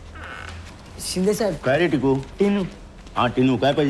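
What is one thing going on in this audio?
A middle-aged man speaks loudly and firmly, close by.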